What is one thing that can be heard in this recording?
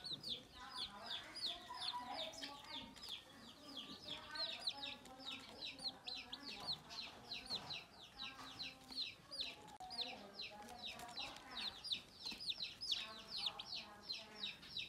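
Chicks peep rapidly and shrilly without pause.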